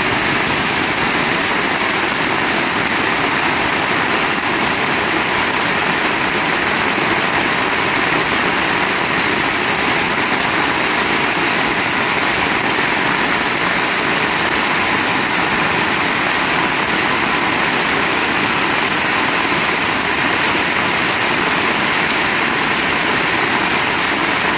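Heavy rain pours down steadily, hissing on a paved road.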